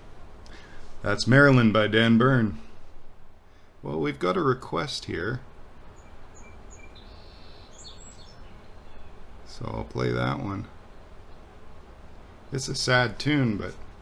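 A middle-aged man talks calmly and warmly into a microphone.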